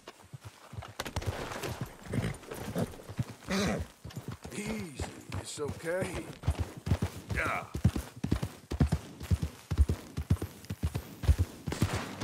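A horse's hooves thud in a quick gallop on a dirt track.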